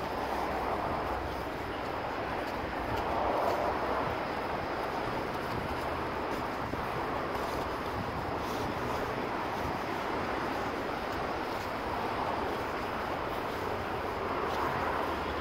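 Footsteps crunch on a snowy pavement.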